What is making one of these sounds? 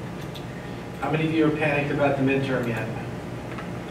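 A man speaks calmly in a large room.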